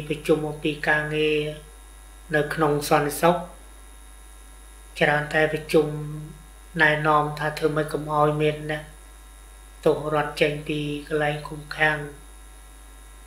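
An older man speaks calmly and close by, in short phrases with pauses.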